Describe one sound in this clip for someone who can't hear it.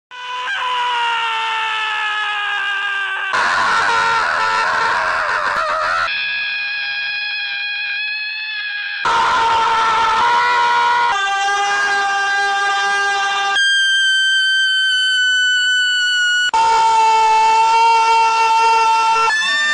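Goats bleat loudly in long, drawn-out cries.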